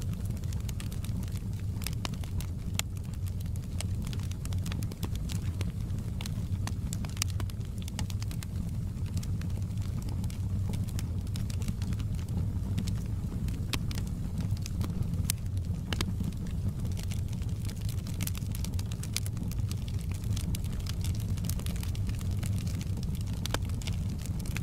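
Logs crackle and pop in a fire.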